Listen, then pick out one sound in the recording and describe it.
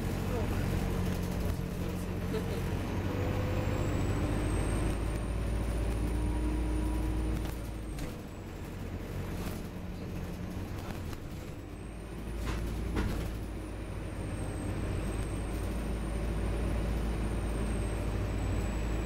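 A bus interior rattles and clatters as it rolls along.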